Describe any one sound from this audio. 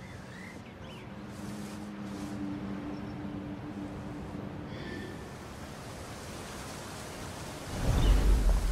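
Wind rushes steadily past a gliding eagle.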